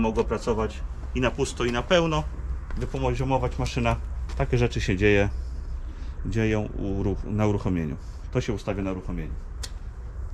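A man talks calmly and clearly nearby.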